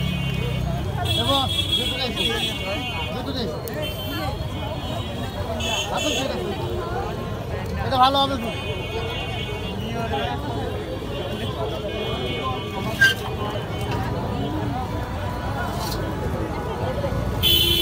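Wood fires crackle.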